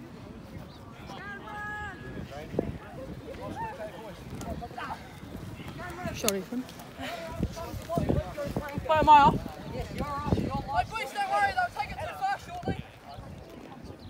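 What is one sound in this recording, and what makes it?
Teenage boys talk and laugh close by, outdoors.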